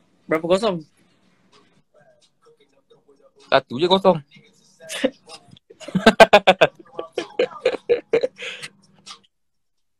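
A young man laughs over an online call.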